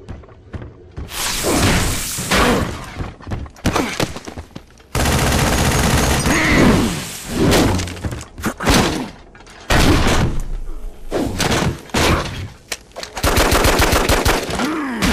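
An energy blast crackles and hisses.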